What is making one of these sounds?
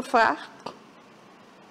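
An elderly woman speaks briefly into a microphone.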